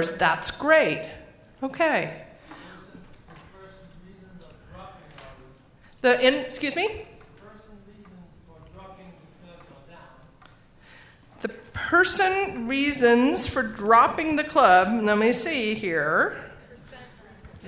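An older woman speaks calmly into a microphone, with pauses.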